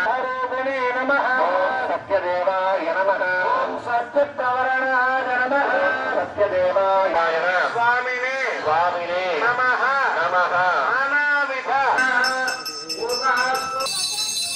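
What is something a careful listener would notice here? A group of women chant prayers together.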